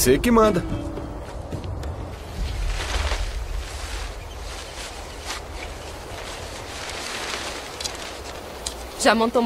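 Wind rushes through trees outdoors.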